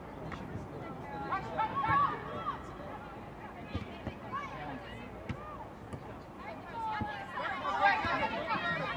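Young women shout to each other on the field.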